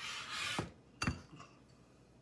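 A glass jar knocks down onto a metal tray.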